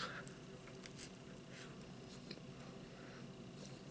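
A pastry crunches as a man bites into it.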